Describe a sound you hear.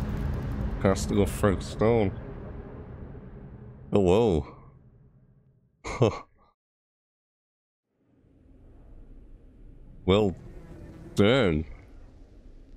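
A young man speaks in short bursts close to a microphone.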